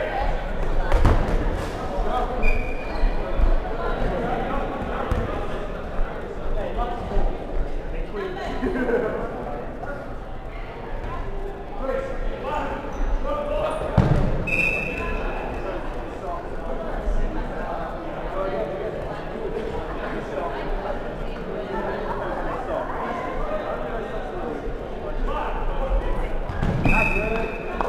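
Balls thud against a wooden floor and bodies.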